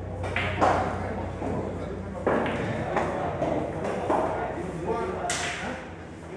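Pool balls clack sharply against each other.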